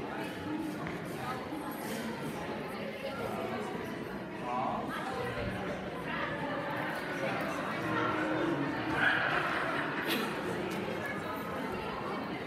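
Women talk calmly in a large echoing hall.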